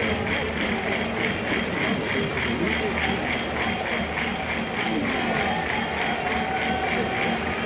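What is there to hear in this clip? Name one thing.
A large crowd chants and cheers steadily in an open stadium.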